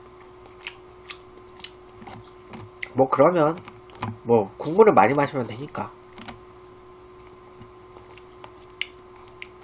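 A young man chews food with crunching sounds.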